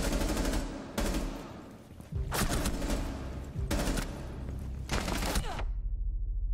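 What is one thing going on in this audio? Rifle shots ring out in loud, sharp bursts.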